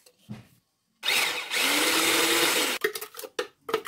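A hand blender whirs loudly.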